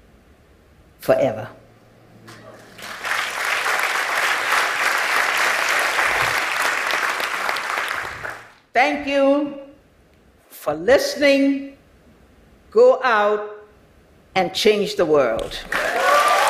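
An elderly woman speaks calmly through a microphone in a large hall.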